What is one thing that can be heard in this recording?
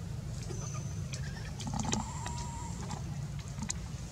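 A young monkey's feet patter softly on stone.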